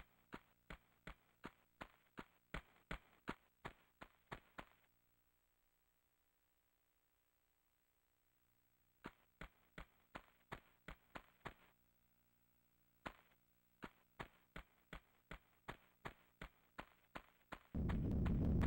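Quick footsteps slap on a hard stone floor.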